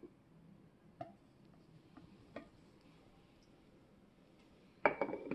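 A glass jar clinks as it is moved and set down.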